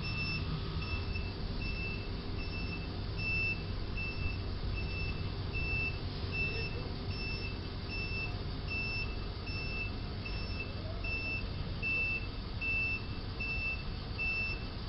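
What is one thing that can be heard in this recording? A truck's reversing alarm beeps steadily at an even pace.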